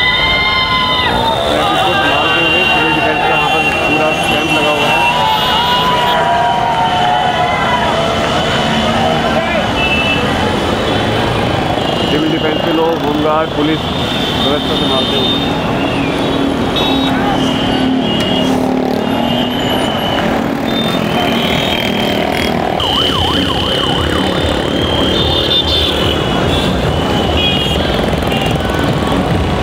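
Motorcycle engines hum as they ride past on a street.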